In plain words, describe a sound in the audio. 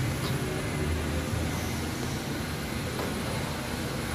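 A car door slides and thuds shut.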